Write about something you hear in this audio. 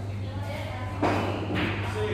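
A pool cue strikes a ball with a sharp clack.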